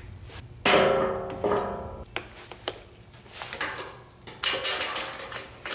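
A metal bumper clanks and rings as it is handled.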